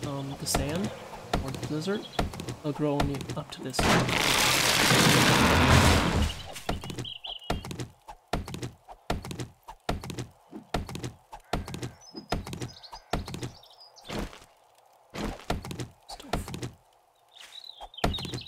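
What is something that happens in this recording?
An axe chops into a tree trunk with sharp, repeated knocks.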